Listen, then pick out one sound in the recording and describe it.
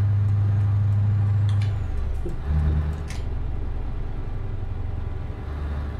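A bus engine hums low and steady, shifting in pitch.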